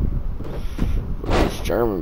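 A body slams heavily onto a ring mat with a thud.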